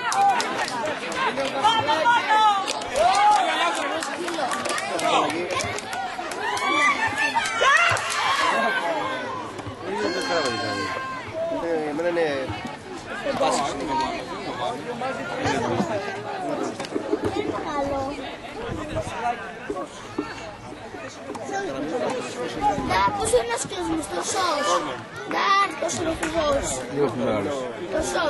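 Young football players shout and call out across an outdoor pitch.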